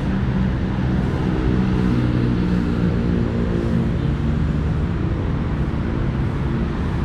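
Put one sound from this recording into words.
Water churns and splashes steadily from a pond aerator.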